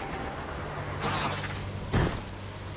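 A crackling energy stream whooshes past.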